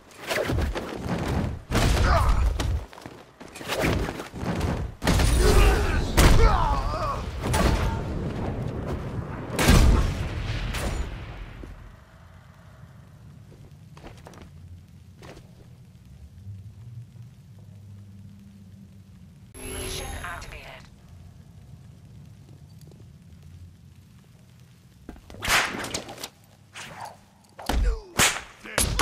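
Punches and kicks thud hard in a fight.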